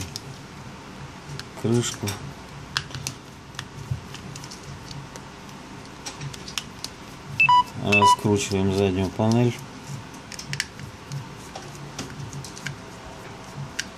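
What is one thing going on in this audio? A small screwdriver clicks against tiny screws in a phone.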